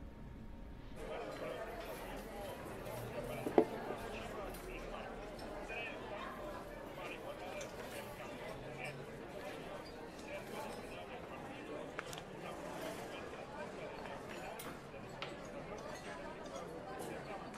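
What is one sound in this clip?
Voices murmur in a busy room.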